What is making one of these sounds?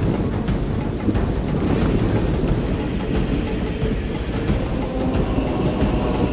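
Armour and weapons clink and rattle throughout the march.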